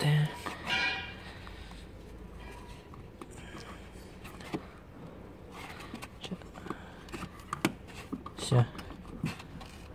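Plastic parts click and knock as a hand works a connector loose.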